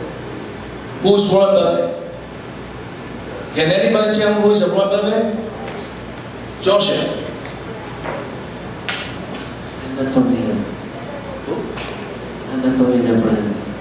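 A man speaks with animation through a microphone and loudspeakers in a large room.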